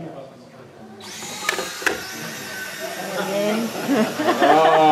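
Small robot motors whir as the robots push against each other.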